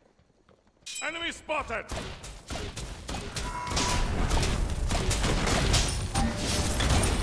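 Magic blasts and impacts crackle in a loud, busy fight.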